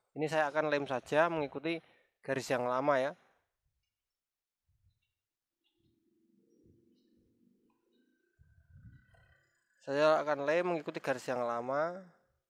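A man speaks calmly and close to the microphone.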